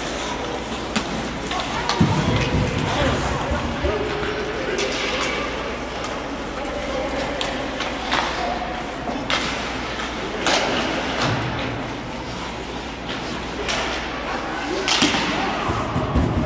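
Ice hockey sticks clack against the puck and the ice.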